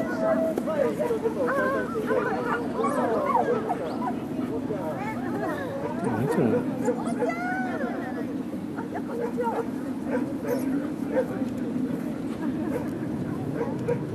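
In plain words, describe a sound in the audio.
Women chat casually in the background outdoors.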